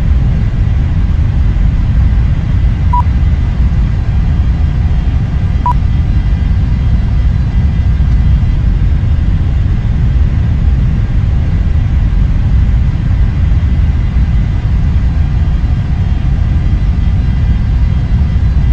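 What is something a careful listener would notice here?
Jet engines hum low and steady at idle.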